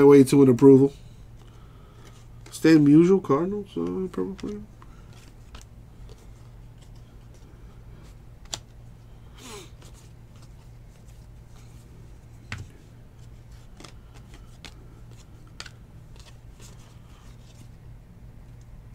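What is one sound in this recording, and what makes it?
Trading cards rustle and click softly as they are flipped through by hand.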